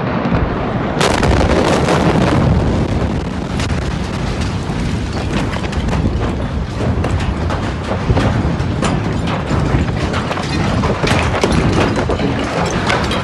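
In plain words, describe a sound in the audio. A powerful blast booms suddenly and rumbles on.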